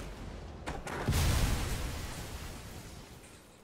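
A cannon blast booms and rumbles.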